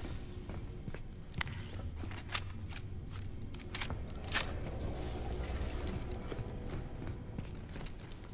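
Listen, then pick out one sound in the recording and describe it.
Footsteps thud slowly on a hard metal floor.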